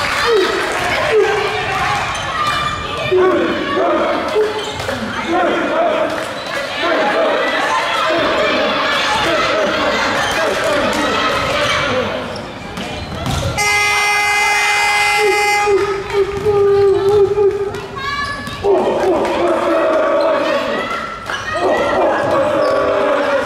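A crowd of young people chants and cheers loudly in a large echoing hall.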